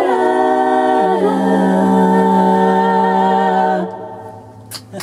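A group of women sing a held chord together, then stop.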